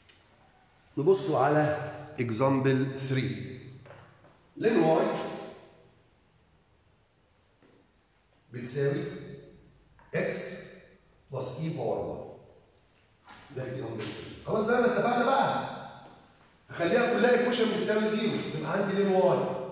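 A middle-aged man lectures calmly into a clip-on microphone.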